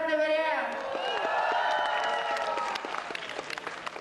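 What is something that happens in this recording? A crowd cheers and whoops in a large echoing hall.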